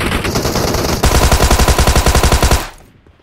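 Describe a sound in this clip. Rapid rifle gunfire rattles.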